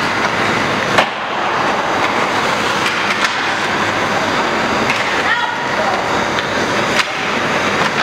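An ice hockey stick strikes a puck with a sharp crack.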